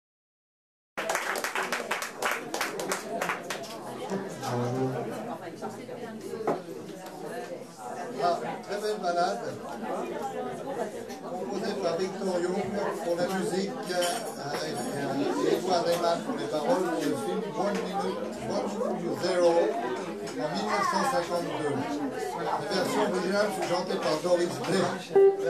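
A drum kit keeps a soft jazz beat.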